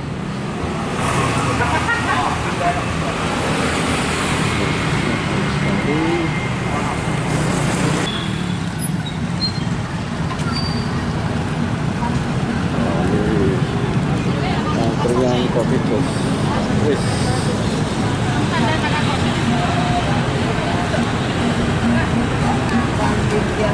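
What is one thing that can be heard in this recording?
Men and women chatter nearby in a busy street.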